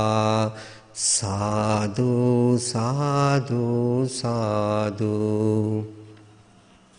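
A man chants in a steady, droning voice into a microphone.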